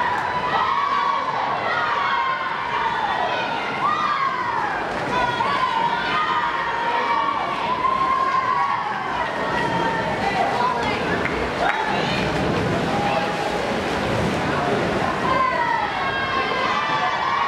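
Swimmers splash through the water in an echoing indoor pool.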